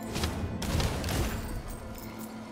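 A burst of rumbling magical whooshes sounds at the start, then fades.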